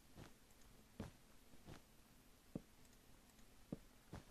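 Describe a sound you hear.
Blocks are placed with soft, short knocks.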